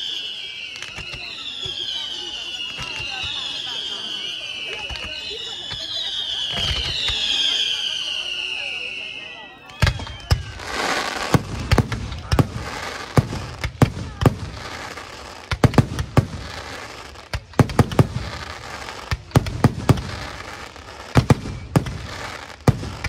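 Fireworks bang and pop repeatedly, close by.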